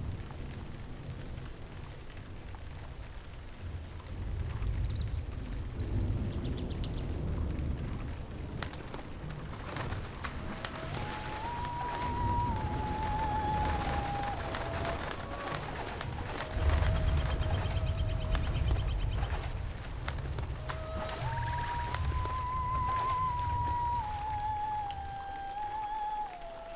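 Small waves lap and splash across open water.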